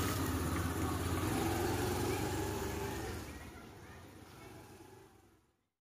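A motor scooter engine hums close by and fades as the scooter rides away.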